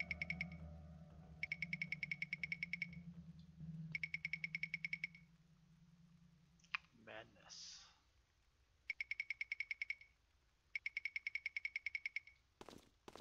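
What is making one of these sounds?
Rapid electronic blips tick as a video game prints dialogue text.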